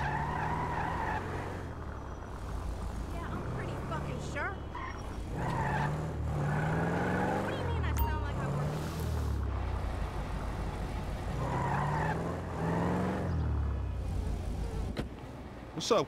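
A car engine hums and revs as the car drives along.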